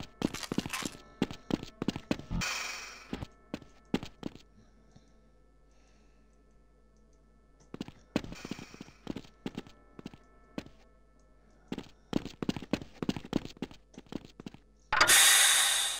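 Footsteps clank on a metal floor at a walking pace.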